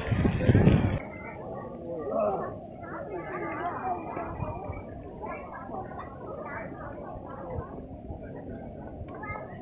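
A crowd of people chatters in the distance.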